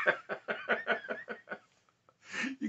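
A middle-aged man laughs heartily close by.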